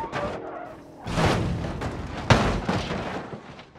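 An explosion booms and roars.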